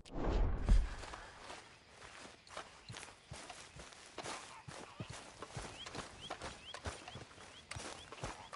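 Footsteps swish through wet grass.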